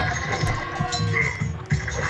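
Swords clash and soldiers fight in a battle.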